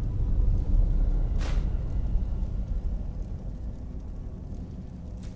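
Flames crackle and hum low and steadily.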